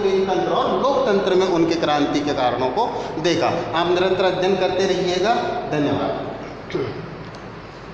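A man speaks with animation, close by, in a room with some echo.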